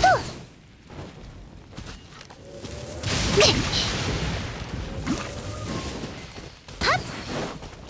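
Fiery blasts explode with loud bursts.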